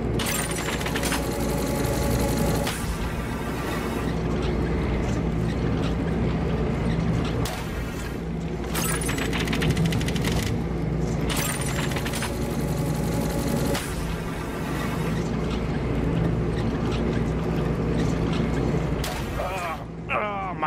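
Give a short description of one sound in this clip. Machinery hums and rumbles steadily.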